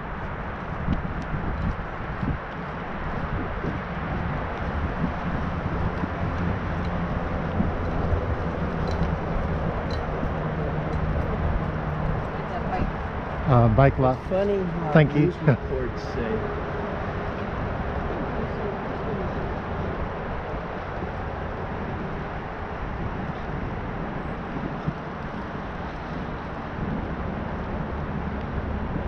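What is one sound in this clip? Bicycle tyres roll over an asphalt path.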